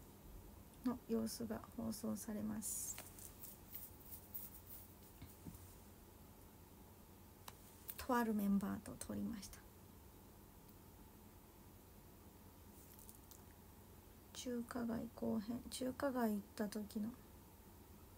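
A young woman speaks calmly close by, in short bursts with pauses.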